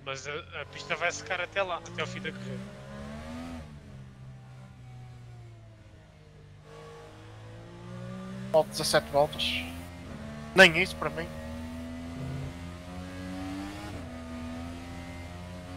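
An open-wheel racing car engine drones as the car accelerates through the gears.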